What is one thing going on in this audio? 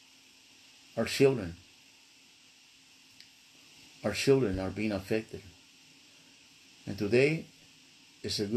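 An older man speaks calmly and slowly in short phrases, close to the microphone, with pauses between them.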